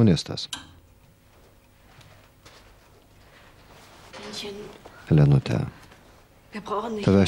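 A middle-aged woman speaks quietly nearby.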